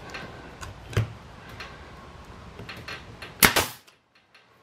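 A nail gun fires with sharp bangs.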